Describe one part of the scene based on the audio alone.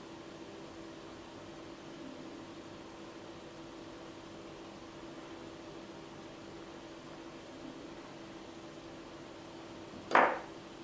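Small tools tap and scrape softly on a work surface.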